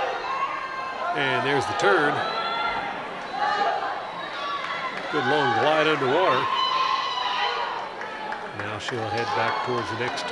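A crowd of young spectators cheers and shouts in a large echoing hall.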